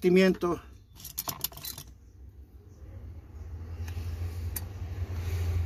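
Small metal parts click and scrape as they are handled.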